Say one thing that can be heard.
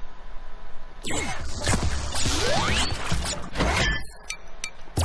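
Game sound effects play loudly with bright whooshes and chimes.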